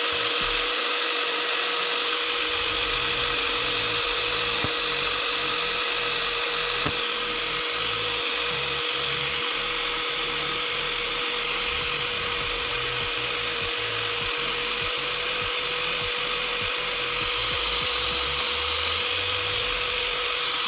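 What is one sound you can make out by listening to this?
A grinding disc rasps against a small metal spring.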